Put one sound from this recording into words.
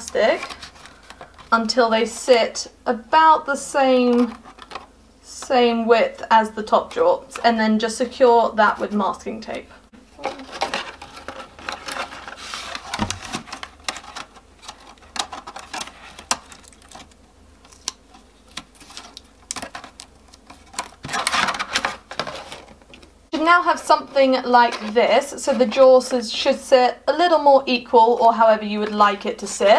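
A thin plastic bottle crinkles and crackles as it is handled.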